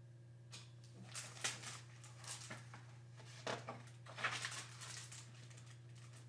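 Paper pages rustle as a book's page is turned.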